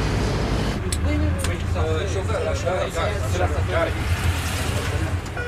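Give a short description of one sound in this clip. A man talks nearby inside a moving bus.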